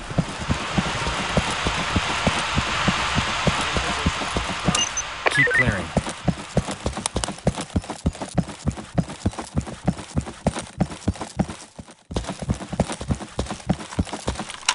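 Footsteps thud quickly and steadily on pavement.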